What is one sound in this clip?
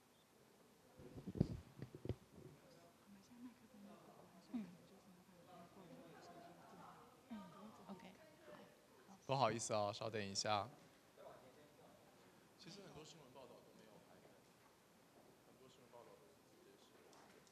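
Young people chatter and murmur quietly in a large hall.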